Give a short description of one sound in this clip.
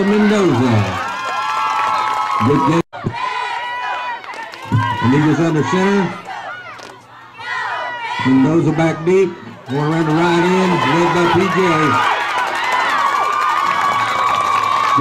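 A crowd cheers and shouts from the stands outdoors.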